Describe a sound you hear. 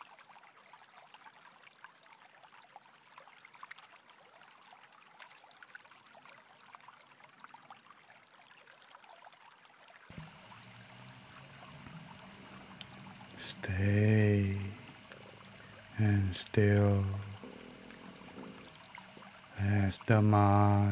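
A stream rushes steadily over rocks.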